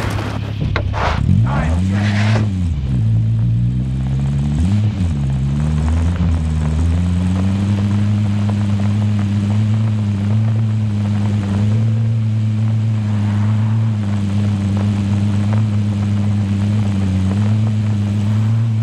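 A car engine revs and then hums steadily.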